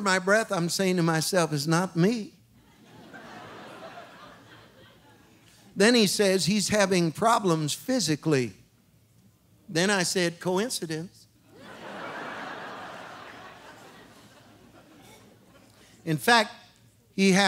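A middle-aged man speaks with animation through a microphone in a large hall, pausing between phrases.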